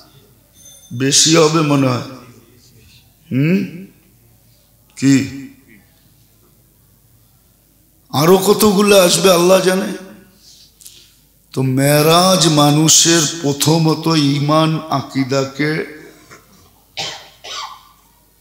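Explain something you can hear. An elderly man preaches with animation into a microphone, in bursts with pauses.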